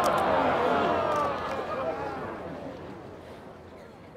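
A crowd of spectators groans and murmurs outdoors.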